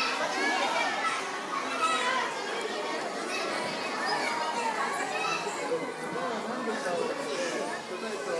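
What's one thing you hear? A crowd of young children chatter and shout excitedly in an echoing hall.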